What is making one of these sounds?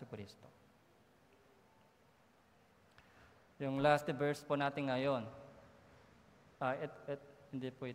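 A man speaks calmly into a microphone, heard through a loudspeaker with pauses.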